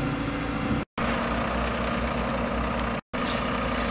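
A truck engine idles with a low hum.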